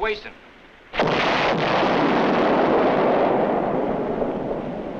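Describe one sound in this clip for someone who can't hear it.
An explosion booms and roars, then slowly fades.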